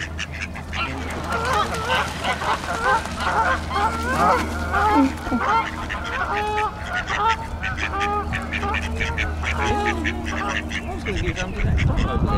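Young goslings cheep in quick, high peeps.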